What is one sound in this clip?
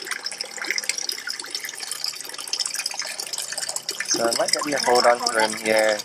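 Water trickles and splashes steadily into a pond.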